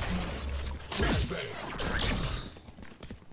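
A flash grenade bursts with a bright ringing whoosh.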